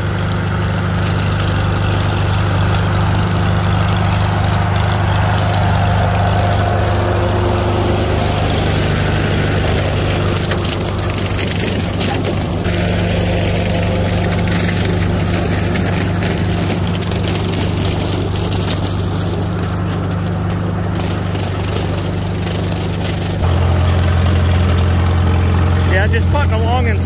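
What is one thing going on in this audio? An old tractor engine chugs steadily, growing louder close by toward the end.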